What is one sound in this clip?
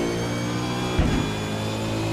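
A racing car engine shifts gears with a sharp pop.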